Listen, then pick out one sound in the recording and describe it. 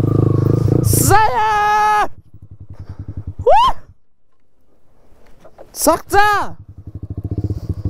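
A motorcycle engine idles with a steady, quick putter.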